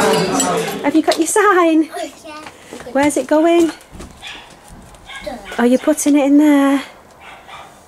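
A young girl talks in a high, excited voice close by.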